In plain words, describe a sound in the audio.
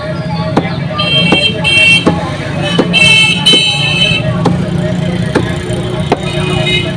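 Motorcycle horns honk in short bursts.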